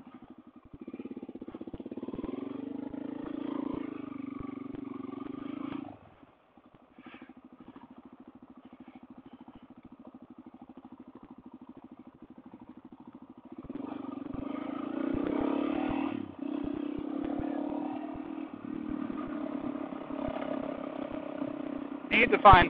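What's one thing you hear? A motorcycle engine rumbles and revs up and down.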